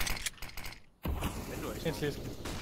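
A smoke grenade hisses loudly.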